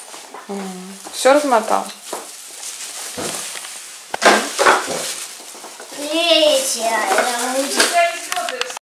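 A young child babbles and chatters close by.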